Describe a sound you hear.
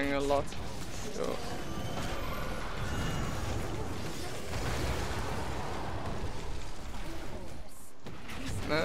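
Magic spells and attacks crackle and whoosh in a busy fight.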